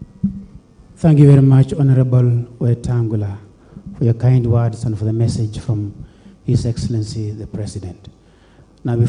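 A man speaks steadily into a microphone, heard through loudspeakers.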